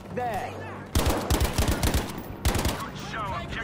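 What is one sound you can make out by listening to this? A rifle fires loud sharp shots.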